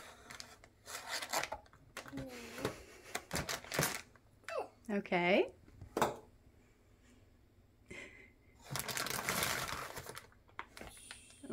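Plastic toy packets crinkle and rustle as they are handled.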